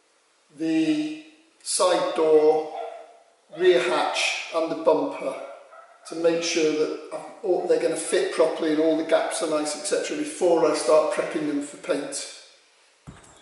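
A middle-aged man speaks calmly and with animation, close by.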